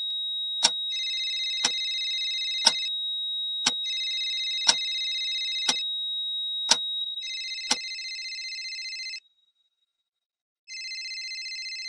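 A phone rings with a repeated electronic trill.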